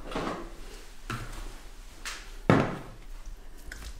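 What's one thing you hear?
A plastic basin knocks against a counter.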